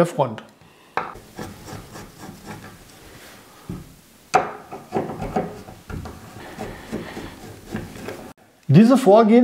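A screwdriver clicks and scrapes as it turns screws.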